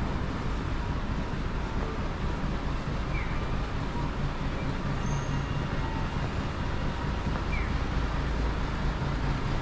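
Traffic rumbles steadily along a street nearby.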